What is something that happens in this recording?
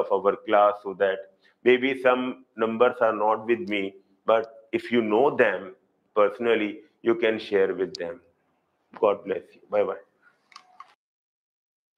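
A middle-aged man lectures calmly into a close microphone.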